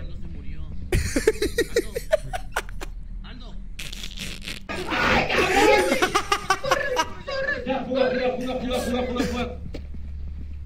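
A young man talks excitedly and laughs into a close microphone.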